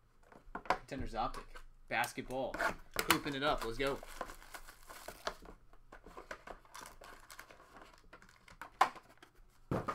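A cardboard box is handled and tapped on a table.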